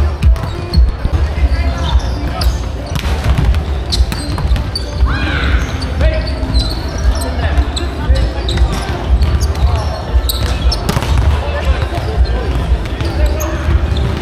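Volleyballs thud as players hit them in a large echoing hall.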